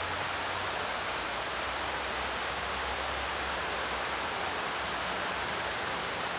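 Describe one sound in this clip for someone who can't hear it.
A small stream rushes over rocks.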